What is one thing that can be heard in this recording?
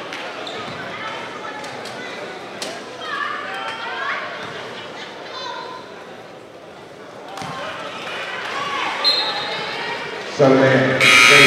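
A small crowd murmurs and calls out in a large echoing gym.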